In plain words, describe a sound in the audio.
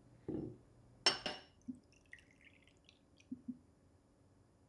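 Liquid pours and splashes into a small cup.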